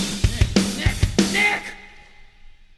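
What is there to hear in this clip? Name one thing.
An electric guitar plays loudly.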